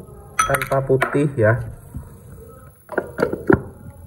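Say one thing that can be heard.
A metal lid clinks onto a bowl.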